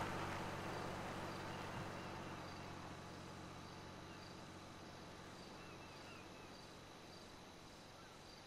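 A car engine hums steadily while driving, slowly growing quieter.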